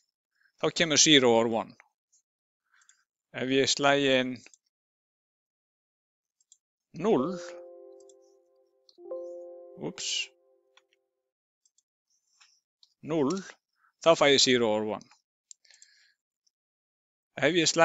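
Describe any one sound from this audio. A man talks calmly and clearly into a close microphone, in short phrases with pauses.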